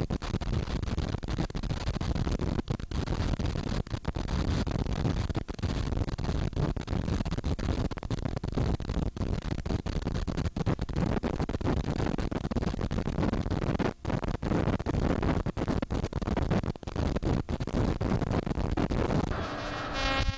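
An aircraft's propeller engine roars loudly close by.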